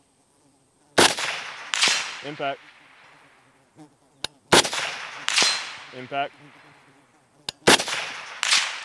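A rifle fires loud shots outdoors that echo away.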